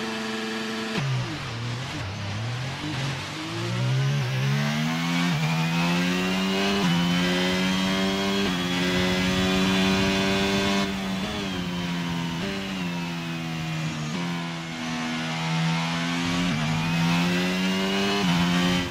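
A Formula 1 car's V6 turbo hybrid engine accelerates hard, shifting up and down through the gears.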